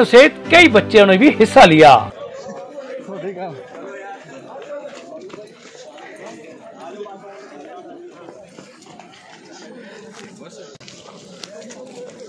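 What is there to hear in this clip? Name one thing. Many shoes patter on a paved road as a group jogs past.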